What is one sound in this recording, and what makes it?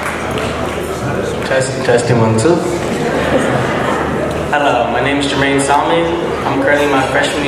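A second man speaks calmly through a microphone and loudspeakers.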